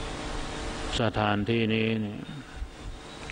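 A man speaks slowly and calmly into a microphone.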